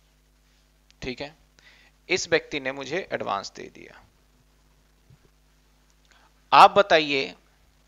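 A man speaks calmly and clearly into a close microphone, in short bursts with pauses.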